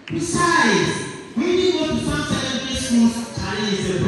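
A boy answers briefly through a microphone.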